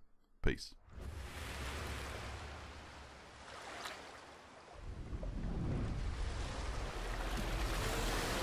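Water splashes and surges loudly.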